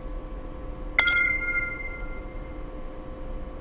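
A menu chime sounds as an exchange is confirmed.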